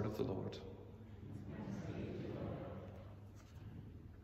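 A middle-aged man speaks softly close by, his voice echoing in a large hall.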